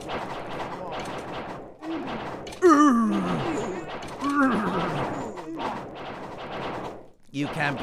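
A young man talks excitedly and close to a microphone.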